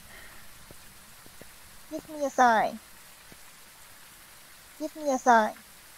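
Rain falls steadily outdoors.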